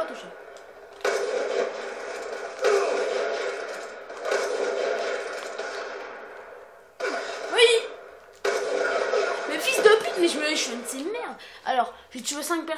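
Gunshots from a video game boom through a television loudspeaker.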